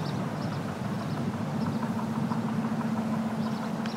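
Traffic roars steadily along a busy freeway.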